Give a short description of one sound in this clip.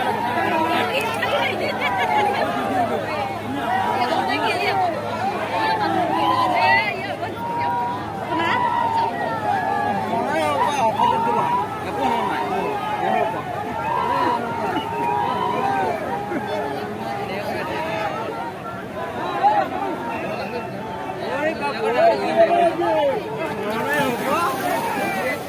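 A large outdoor crowd shouts and cheers with excitement.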